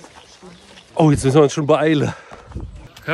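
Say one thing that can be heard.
A young man speaks loudly and excitedly close by.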